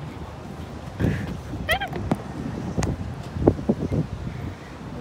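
Rope netting creaks and rattles as someone climbs.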